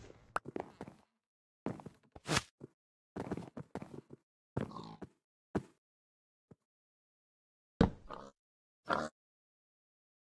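Wooden blocks are placed with short, hollow knocks.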